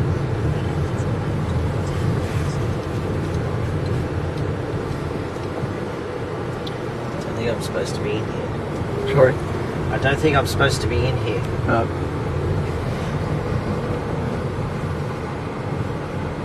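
A car engine hums steadily at low speed, heard from inside the car.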